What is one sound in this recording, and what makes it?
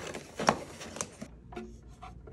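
Cardboard rustles as a box is unpacked.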